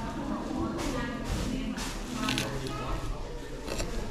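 A knife and fork scrape on a plate while cutting food.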